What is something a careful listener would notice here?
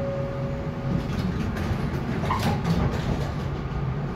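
Bus doors slide shut with a clunk.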